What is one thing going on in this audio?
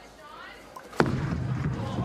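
A bowling ball thuds onto a lane.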